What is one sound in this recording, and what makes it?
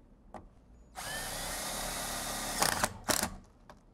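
A cordless drill whirs as it drives a screw into metal.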